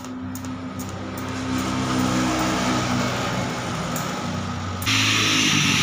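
Electric welding crackles and hisses.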